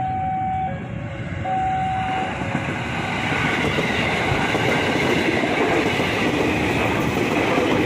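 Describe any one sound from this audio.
An electric train rumbles past close by, with wheels clattering on the rails.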